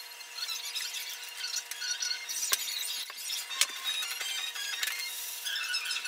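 Sticky tape peels off with a soft tearing sound.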